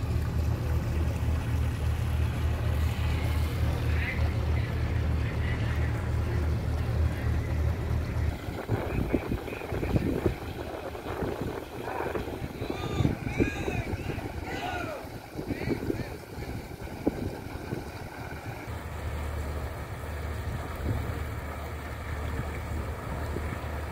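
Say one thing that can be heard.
Muddy floodwater flows and laps steadily outdoors.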